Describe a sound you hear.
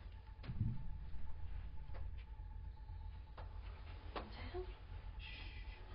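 Footsteps move softly across a room.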